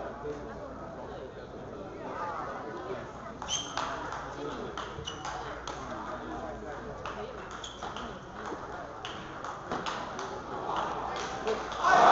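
A ping-pong ball clicks back and forth off paddles and a table in a quick rally.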